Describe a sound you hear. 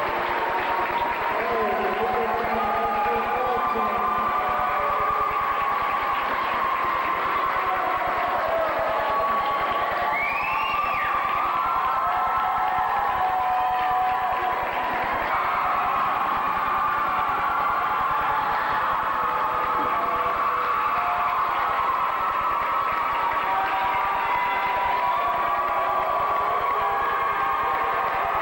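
A crowd chatters and murmurs in a large echoing hall.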